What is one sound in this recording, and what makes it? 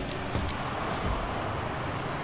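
A ball is struck with a hard thump.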